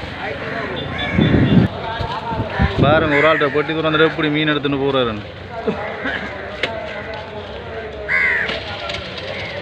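Crows caw loudly and harshly nearby.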